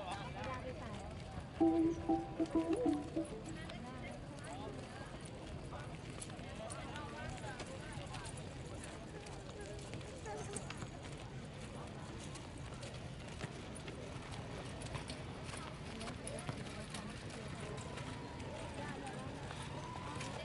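Footsteps of many runners patter on pavement.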